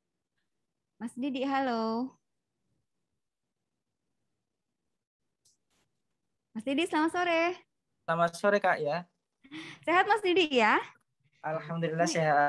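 A young woman speaks calmly into a microphone, with pauses.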